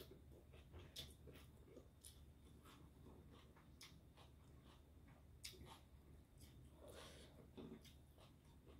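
A woman slurps noodles and chews loudly close up.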